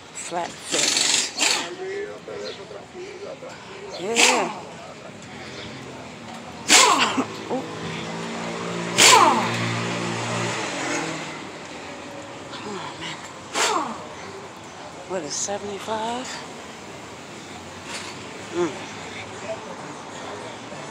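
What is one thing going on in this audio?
A woman talks with animation close to a phone's microphone.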